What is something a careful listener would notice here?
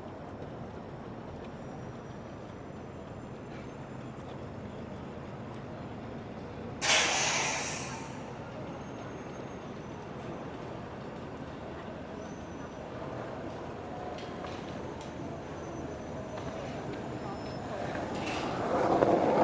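City traffic hums steadily outdoors at night.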